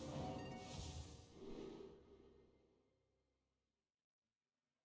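A computer game plays shimmering magical effects with a low rumble that slowly fades away.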